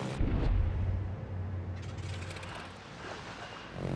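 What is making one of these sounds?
Waves splash against a ship's hull.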